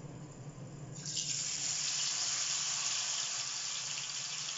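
Hot oil bursts into a loud sizzle as fish is dropped into a pan.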